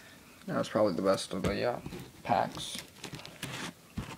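Trading cards tap and slide on a cloth surface.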